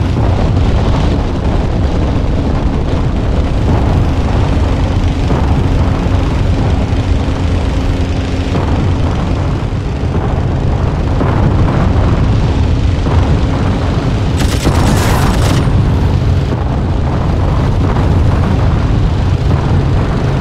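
A propeller engine drones loudly and steadily.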